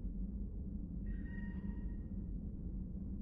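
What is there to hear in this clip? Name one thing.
A soft electronic tone sounds as text scrolls.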